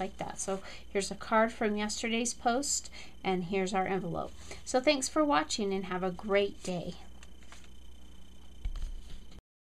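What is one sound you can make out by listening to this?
Stiff paper cards rustle softly as they are handled.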